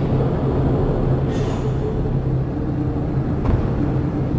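A heavy metal hatch unlocks and rolls open.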